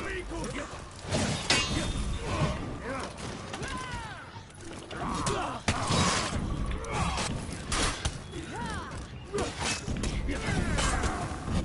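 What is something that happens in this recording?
Metal blades clash and ring in a fight.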